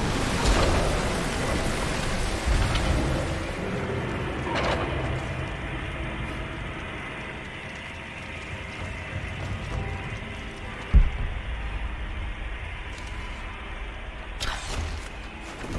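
Gas hisses steadily from a pipe.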